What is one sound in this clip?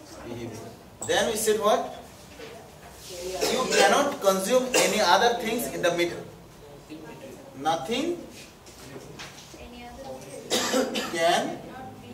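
A man speaks calmly and explains, close by.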